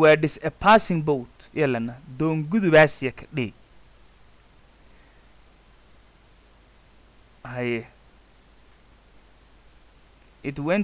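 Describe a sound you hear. A young man speaks slowly and clearly close to a microphone, with pauses.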